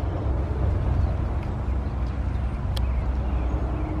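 Birds chirp nearby.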